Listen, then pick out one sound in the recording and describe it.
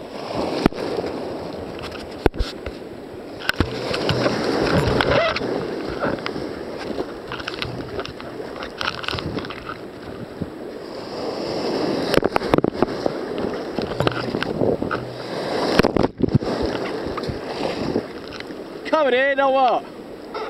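Water splashes against the hull of a kayak.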